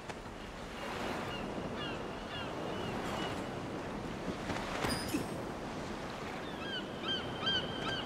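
Water washes steadily against rocks nearby.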